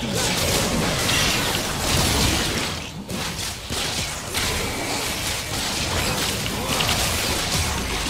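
Game combat effects whoosh and clash in quick bursts.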